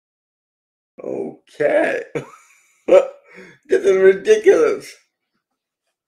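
A man talks with animation into a microphone on an online call.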